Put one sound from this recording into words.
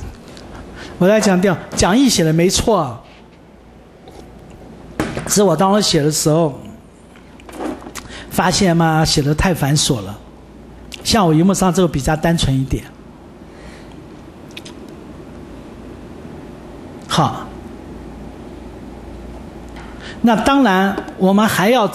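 A man speaks calmly into a microphone in bursts with pauses.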